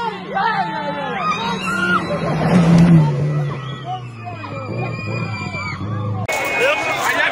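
A rally car engine roars past at high speed.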